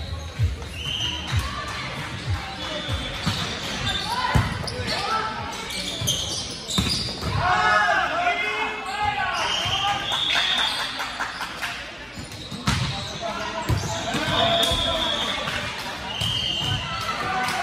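Shoes squeak sharply on the court.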